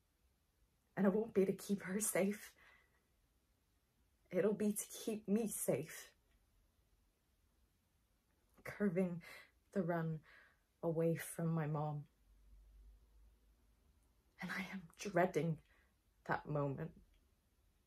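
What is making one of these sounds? A young woman speaks emotionally and quietly, close by.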